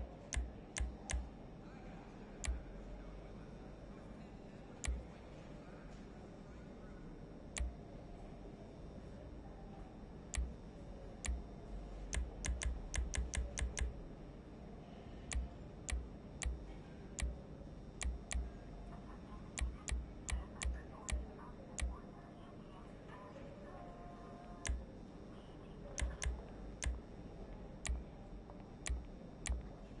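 Short menu clicks tick as options change.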